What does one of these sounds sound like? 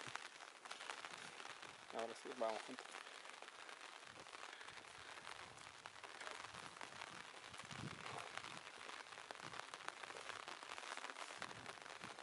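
Light rain patters down outdoors.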